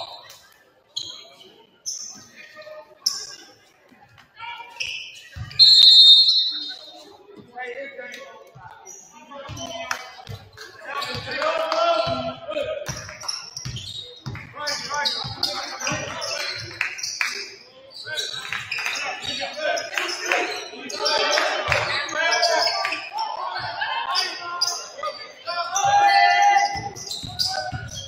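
Sneakers squeak sharply.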